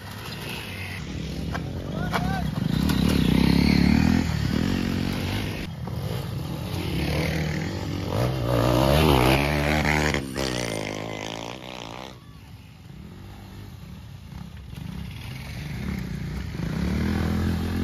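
Dirt bike engines rev and roar close by, rising and falling.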